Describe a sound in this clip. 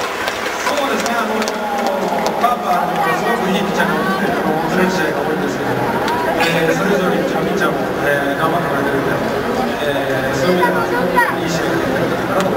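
A man speaks calmly through a microphone, heard over loudspeakers with a broad echo outdoors.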